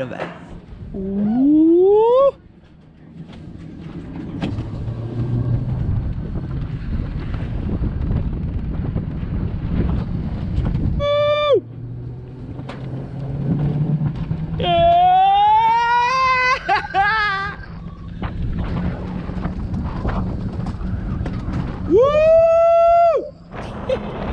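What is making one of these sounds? A young man yells and whoops with excitement.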